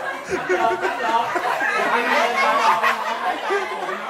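A young woman laughs loudly nearby.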